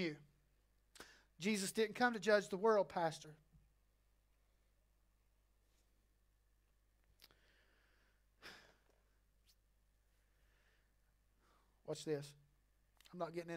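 A man speaks in short bursts with long pauses, heard through a microphone.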